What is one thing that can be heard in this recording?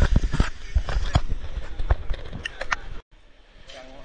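Wind blows over the microphone.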